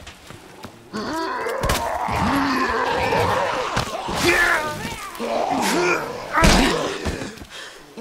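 A man growls and snarls hoarsely up close.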